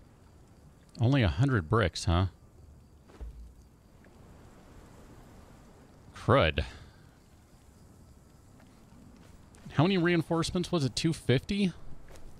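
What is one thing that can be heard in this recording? A man speaks casually and in short bursts, close to a microphone.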